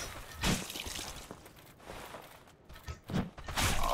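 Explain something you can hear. A metal weapon swings with a whoosh.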